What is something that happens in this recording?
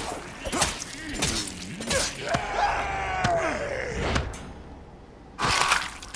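Flesh tears with a wet squelch.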